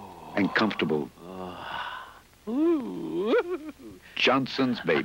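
A man sings loudly and freely, close by.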